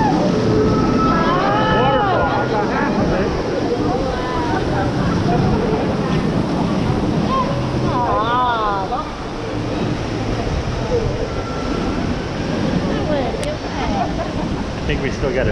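Water rushes and splashes loudly around a raft.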